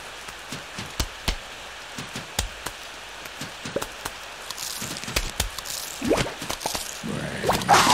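A frosty blast crackles and shatters.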